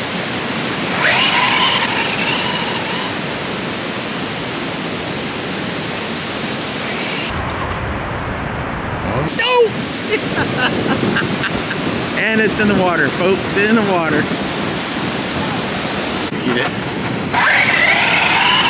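A small electric motor whines as a toy car speeds along.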